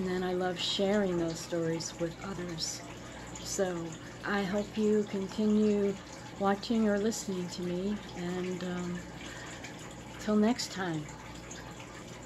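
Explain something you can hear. A woman speaks calmly and close up to a microphone.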